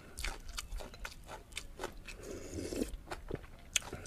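A spoon scrapes and clinks against a glass bowl.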